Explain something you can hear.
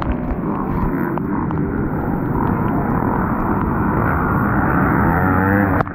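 Other dirt bikes roar past nearby.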